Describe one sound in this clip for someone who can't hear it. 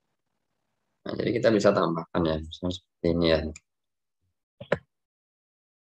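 A young man speaks briefly through an online call.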